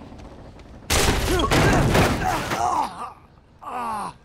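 A heavy body crashes down into snow with a loud thud.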